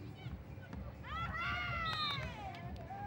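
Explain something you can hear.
A young woman shouts out on an open-air court.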